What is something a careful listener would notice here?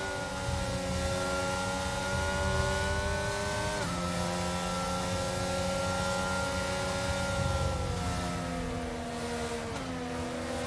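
A racing car engine whines at a high, steady pitch, dropping briefly as gears change.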